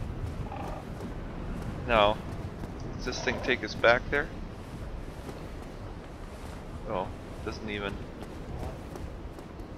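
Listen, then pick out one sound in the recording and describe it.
Footsteps pad across grass.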